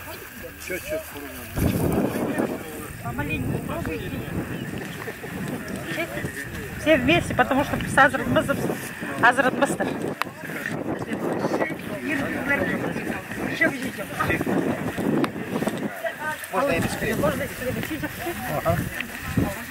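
Several women and men talk at once outdoors, close by.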